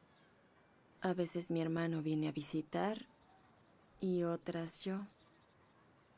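A woman speaks quietly and with emotion, close by.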